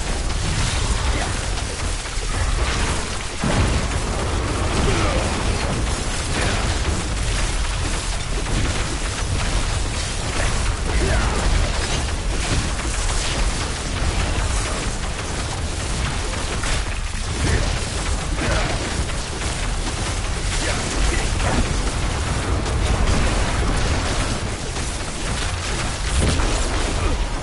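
Lightning bolts crack and zap again and again.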